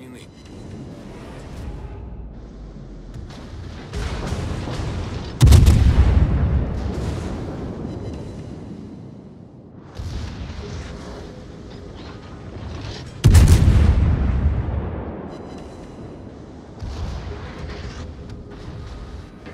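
Shells explode in heavy, thudding blasts.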